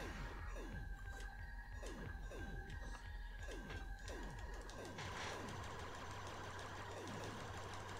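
Electronic laser shots zap rapidly, each falling in pitch.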